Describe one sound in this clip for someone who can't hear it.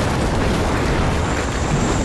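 Lightning crackles sharply.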